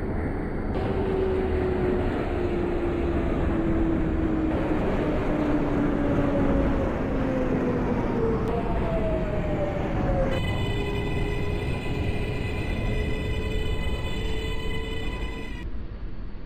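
A train's electric motors whine lower as the train slows down.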